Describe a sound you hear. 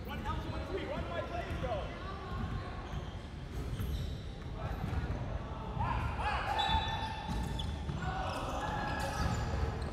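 Young players call out to each other.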